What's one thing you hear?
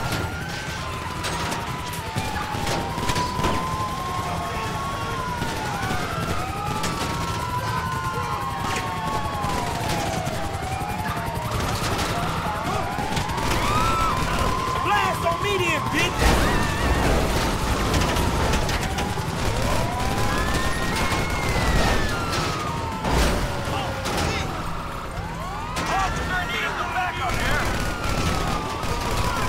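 Several police sirens wail and overlap.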